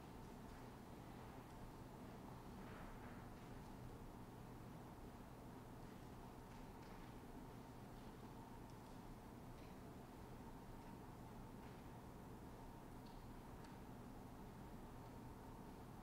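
A woman speaks quietly through a microphone in a large echoing room.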